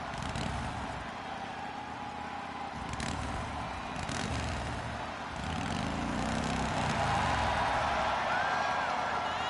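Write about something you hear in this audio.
A large crowd cheers loudly in a big echoing arena.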